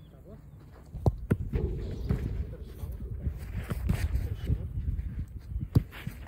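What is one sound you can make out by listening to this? A ball smacks into a goalkeeper's gloves.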